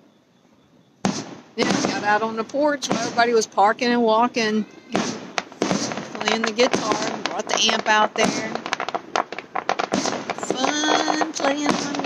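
Fireworks crackle and pop in rapid bursts.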